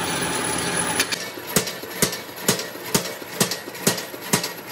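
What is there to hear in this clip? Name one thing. A heavy metal press thumps and clanks in a steady, quick rhythm.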